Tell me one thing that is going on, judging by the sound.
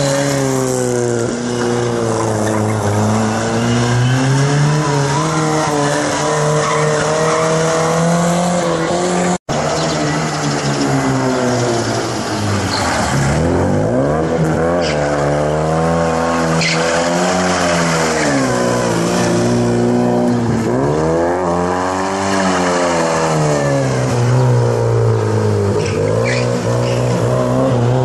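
A small car engine revs hard, rising and falling in pitch as the car races by close.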